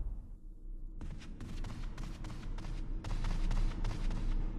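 Footsteps thud on wooden stairs in a large echoing hall.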